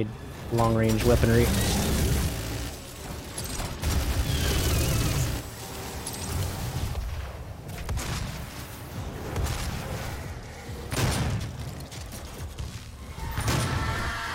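Heavy guns fire in loud, rapid blasts.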